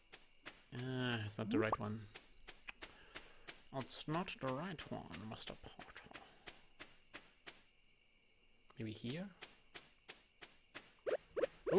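Quick, light footsteps tap steadily on a dirt path.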